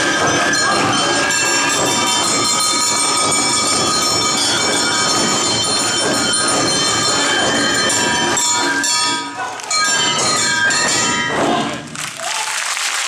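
Large drums beat out a rhythm.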